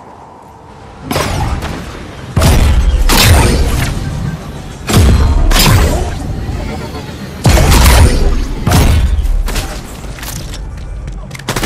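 A game character grinds along a metal rail with loud rushing whooshes.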